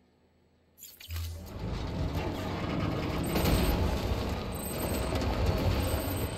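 Tyres crunch and bump over rough rocky ground.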